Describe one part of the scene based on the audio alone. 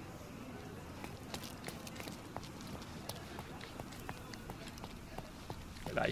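Footsteps tap on stone paving at a brisk pace.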